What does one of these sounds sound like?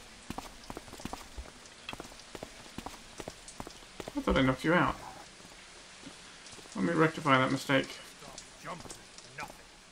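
Footsteps fall on cobblestones at a walking pace.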